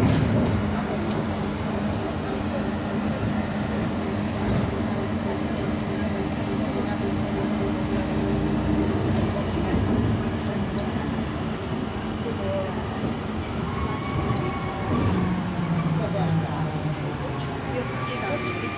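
A bus engine hums and rumbles steadily while the bus drives.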